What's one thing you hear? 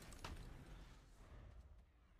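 A deep fanfare swells.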